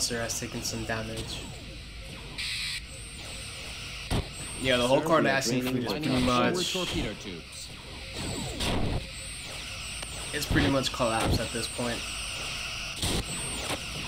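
Energy weapons fire in sharp, zapping blasts.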